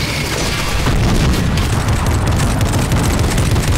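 A mounted gun fires in rapid bursts.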